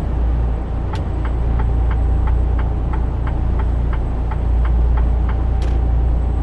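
A turn signal ticks evenly for a few seconds.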